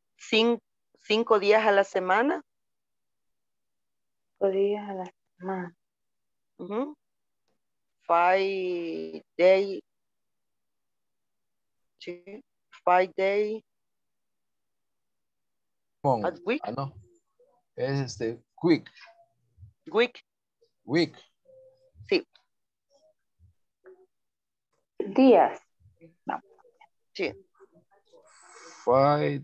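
A woman speaks in short bursts over an online call.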